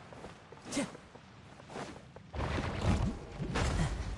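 A game character scrambles and climbs over rock.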